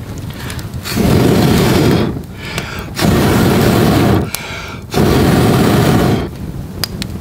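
A man blows hard on a fire in long, breathy gusts.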